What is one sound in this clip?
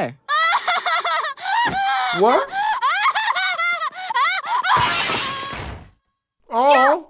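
A man talks with animation close by.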